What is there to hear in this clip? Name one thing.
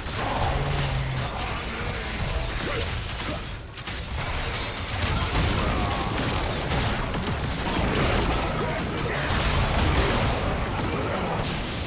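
Game spell effects crash and whoosh in a fast battle.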